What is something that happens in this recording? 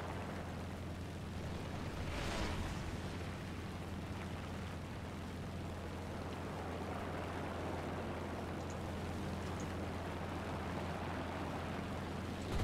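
Wind rushes past a plane in flight.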